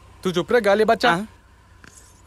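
A young man speaks in a low voice.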